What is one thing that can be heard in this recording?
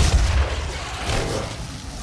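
A creature's flesh is torn apart with wet, crunching blows.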